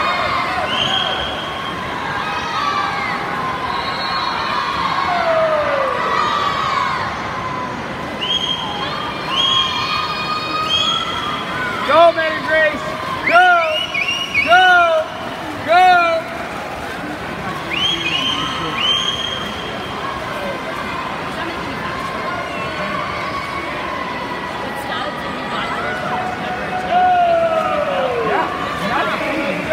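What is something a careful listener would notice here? A crowd of spectators cheers and shouts loudly in a large echoing hall.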